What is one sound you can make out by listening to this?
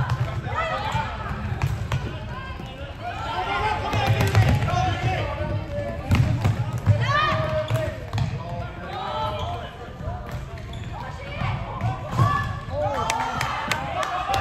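Plastic sticks clack against a ball.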